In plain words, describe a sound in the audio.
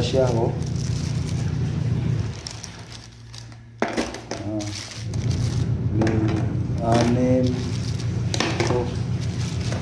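A plastic bag rustles.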